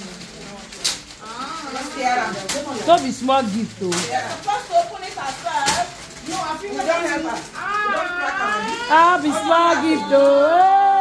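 Several women talk and exclaim excitedly close by.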